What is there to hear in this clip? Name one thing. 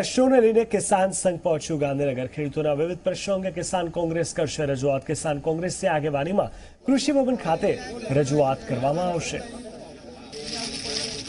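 A man speaks steadily and clearly into a microphone, like a news presenter.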